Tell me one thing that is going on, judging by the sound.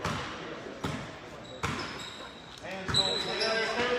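A basketball bounces on a hard floor in a large echoing gym.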